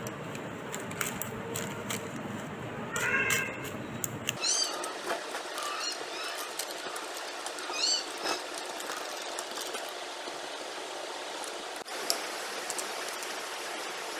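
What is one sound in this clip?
A spoon presses and scrapes a crumbly mixture.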